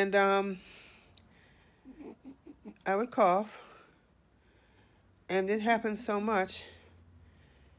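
A middle-aged woman talks calmly and close to a microphone.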